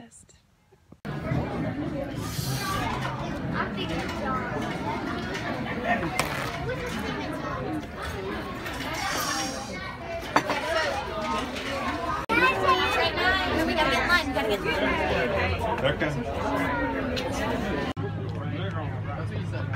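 A crowd of people chatters in a busy, noisy room.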